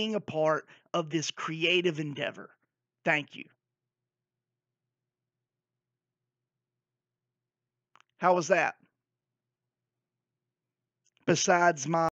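A man talks through a headset microphone with animation, in short bursts with pauses.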